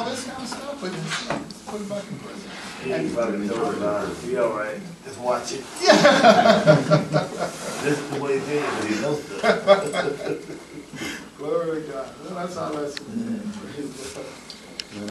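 An adult man speaks steadily in a room with some echo.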